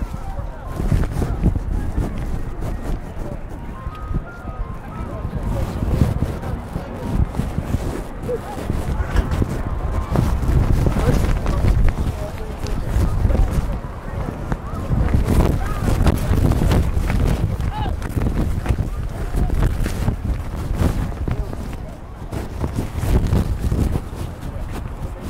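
A crowd of spectators chatters and calls out in the distance.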